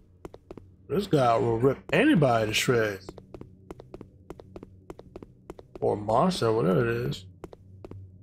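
A young man speaks with animation through a close microphone.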